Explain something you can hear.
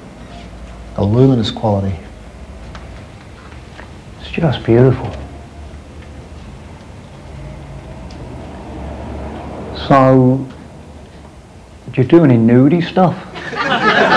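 A man speaks calmly in short phrases nearby.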